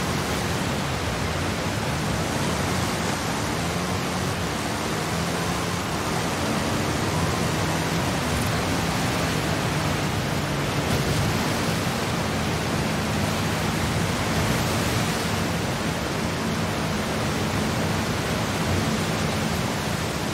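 Water splashes and sprays under tyres.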